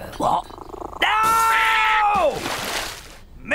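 A cat yowls loudly.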